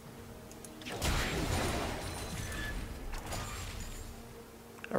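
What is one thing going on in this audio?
Video game combat effects whoosh and crackle in a burst.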